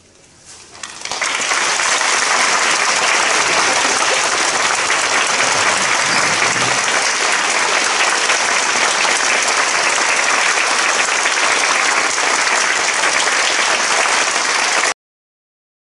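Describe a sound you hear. An audience applauds loudly and steadily in a large hall.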